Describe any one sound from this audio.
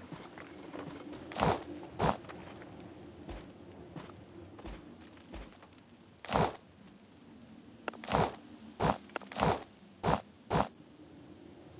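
Footsteps tap on wooden floorboards.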